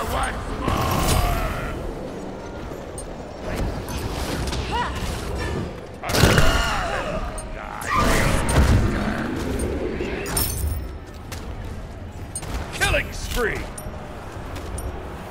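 Magic blasts and spell effects whoosh and crackle in a fight.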